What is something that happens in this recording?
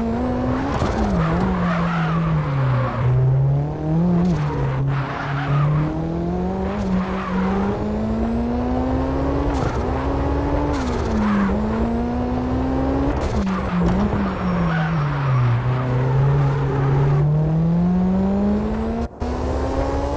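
Tyres screech as a car slides sideways.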